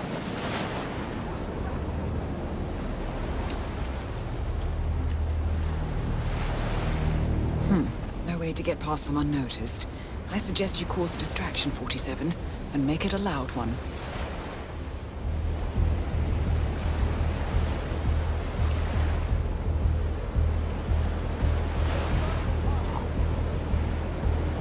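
Shallow waves wash and hiss over a shore.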